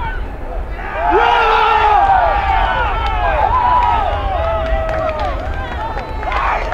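Young men cheer and shout loudly in celebration.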